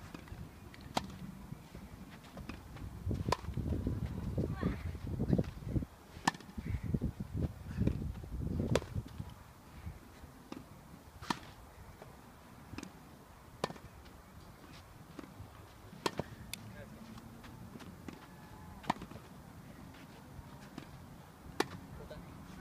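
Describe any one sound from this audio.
A tennis racket strikes a ball with a sharp pop every few seconds.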